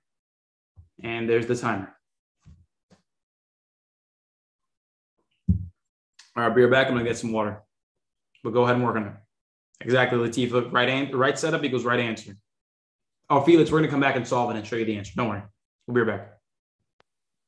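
A young man speaks calmly and clearly into a close microphone, in short phrases.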